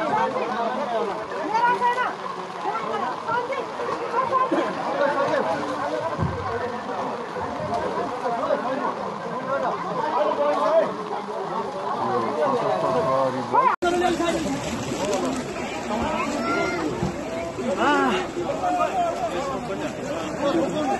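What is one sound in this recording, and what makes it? A crowd of men talk and shout excitedly nearby.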